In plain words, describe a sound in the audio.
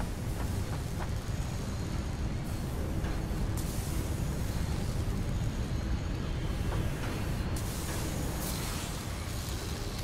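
Machinery hums and whirs steadily.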